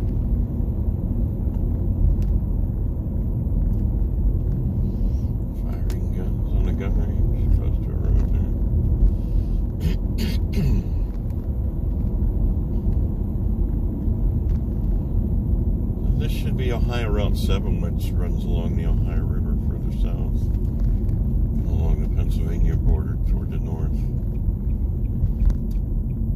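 A car engine hums steadily with road rumble inside the car.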